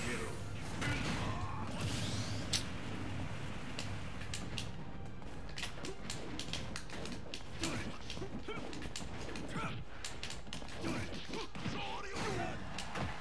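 Video game fighting sounds, with hits and blasts, play throughout.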